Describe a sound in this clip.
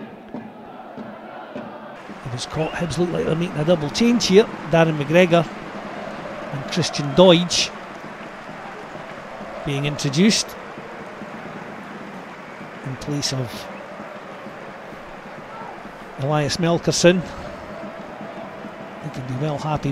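A large stadium crowd murmurs steadily outdoors.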